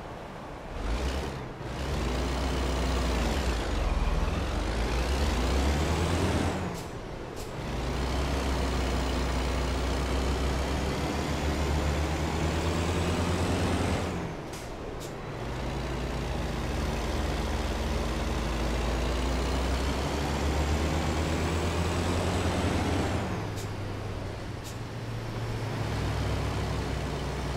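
A truck's diesel engine drones and revs up, dropping in pitch at each gear change.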